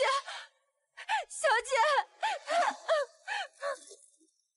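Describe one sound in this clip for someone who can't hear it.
A young woman cries out pleadingly, close by.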